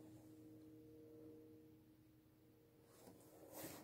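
An acoustic guitar chord rings out and slowly fades.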